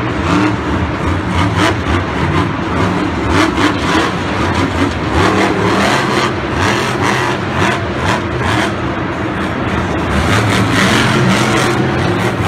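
A large crowd cheers in a big echoing arena.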